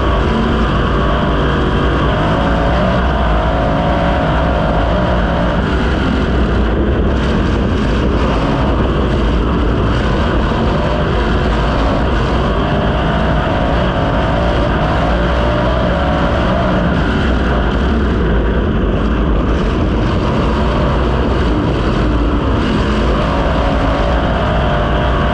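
A race car engine roars loudly and close, rising and falling as the car speeds around.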